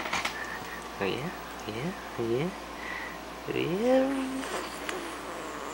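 A small dog whines and yelps in short rising cries.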